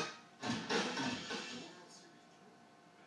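Music plays briefly through a television's speakers.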